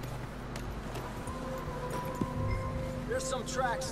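Horse hooves plod through deep snow.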